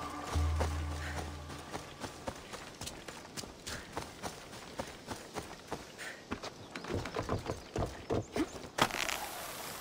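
Footsteps run quickly over ground and wooden boards.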